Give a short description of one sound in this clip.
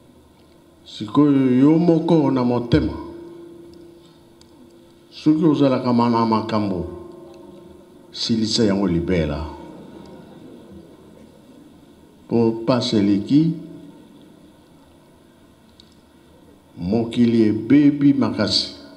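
An elderly man speaks loudly in short, forceful phrases through a microphone and loudspeakers.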